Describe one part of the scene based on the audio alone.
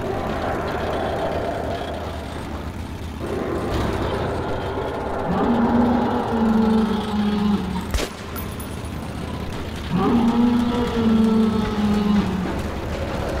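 A rail vehicle rumbles and rattles along tracks.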